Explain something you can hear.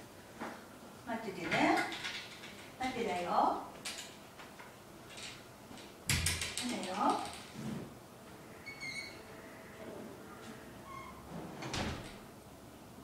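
A woman speaks commands to a dog in a lively voice.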